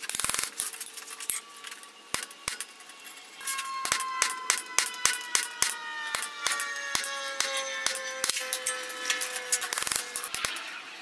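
Metal on an anvil rings out with a lingering tone.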